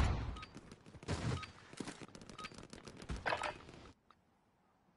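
Gunshots crack in quick bursts, then stop abruptly.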